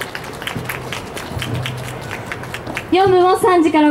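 A crowd claps and cheers outdoors.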